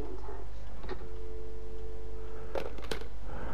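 A telephone dial tone hums steadily, then cuts off.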